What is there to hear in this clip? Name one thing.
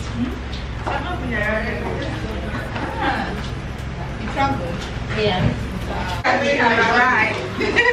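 Young women greet each other excitedly and laugh.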